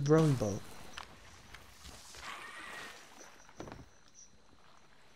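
Water sloshes gently against a small boat.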